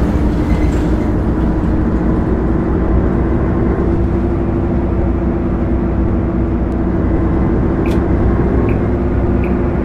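A bus engine hums and rumbles steadily as the bus drives along.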